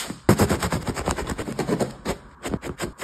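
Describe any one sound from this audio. A knife saws through crusty bread.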